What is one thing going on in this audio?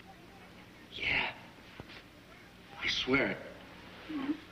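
A man murmurs quietly up close.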